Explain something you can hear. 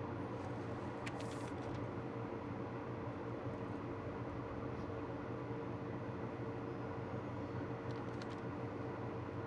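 A sheet of paper rustles briefly as it is picked up and turned over.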